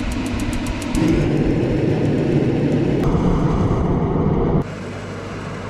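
A gas heater roars as its flame burns.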